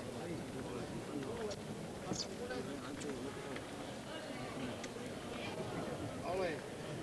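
A large group of men sing together in an echoing hall.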